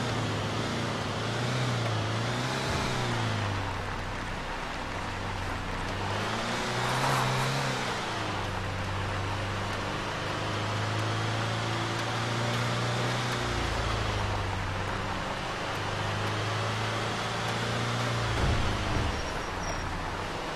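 Tyres crunch over a dirt track.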